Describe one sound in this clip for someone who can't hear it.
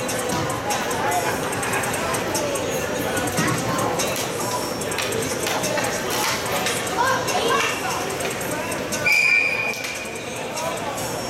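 Many voices chatter in a large echoing hall.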